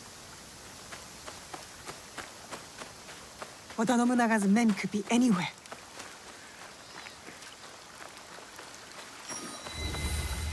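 Quick footsteps run over dirt.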